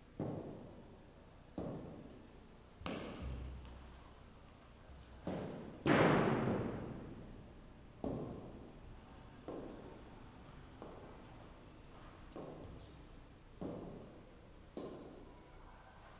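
A karate uniform snaps sharply with each quick strike, echoing around a bare room.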